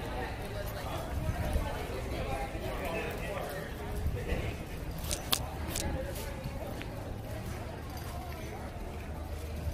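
Stroller wheels roll over pavement.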